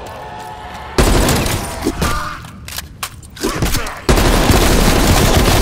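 A rifle fires in loud rapid bursts.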